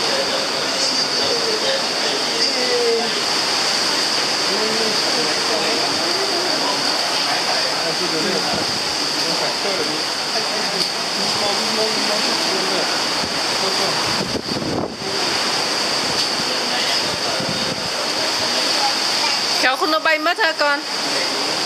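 Waves wash onto a beach nearby.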